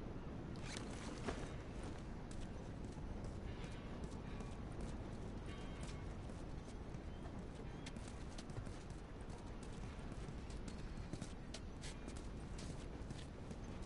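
Footsteps walk over hard ground.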